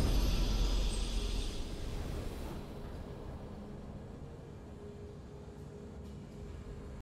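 A triumphant game fanfare rings out loudly and slowly fades.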